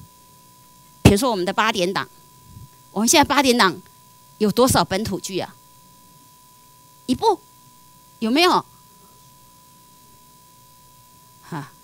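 A woman speaks clearly into a microphone, in short phrases with pauses.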